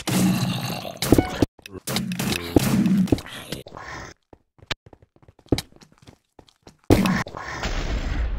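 A gun fires in sharp, quick shots.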